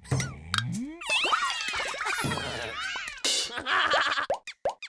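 Cartoon characters chatter and squeal in high, silly voices.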